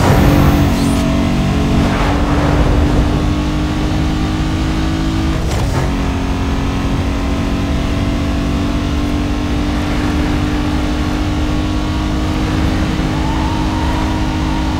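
Tyres rumble and hiss on the road.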